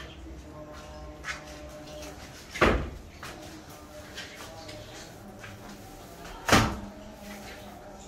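Ceiling boards thump as hands push them into place.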